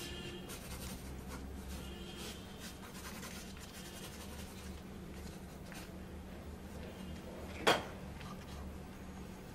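A pen scratches and scrapes across paper in short strokes.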